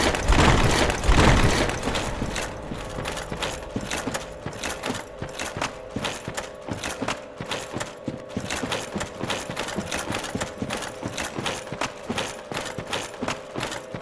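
Armoured footsteps crunch on rocky ground at a steady pace.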